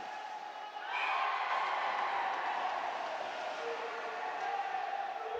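A crowd in an arena cheers loudly.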